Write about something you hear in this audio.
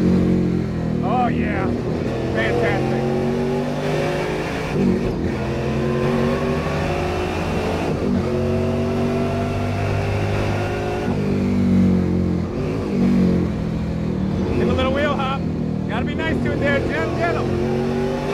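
Tyres squeal briefly through corners.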